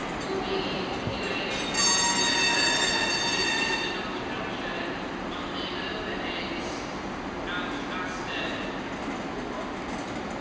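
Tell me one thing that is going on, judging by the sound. Passenger coaches roll slowly over rail points.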